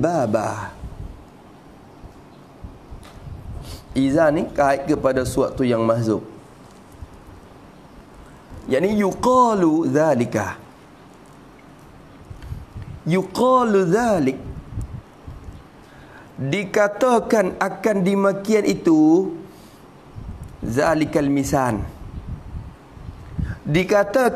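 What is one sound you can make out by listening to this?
A man speaks calmly into a nearby microphone, with pauses between phrases.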